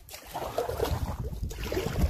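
A paddle dips and splashes in the water.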